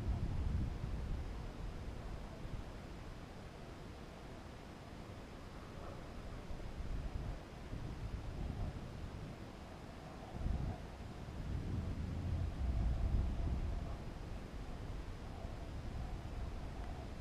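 Wind rumbles and buffets against the microphone in uneven gusts.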